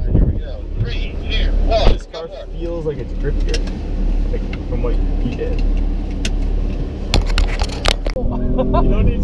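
A man talks with animation inside a car.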